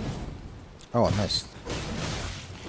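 A sword clangs against armour.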